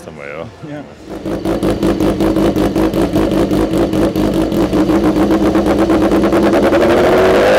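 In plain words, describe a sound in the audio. A motorcycle engine revs loudly and rises in pitch.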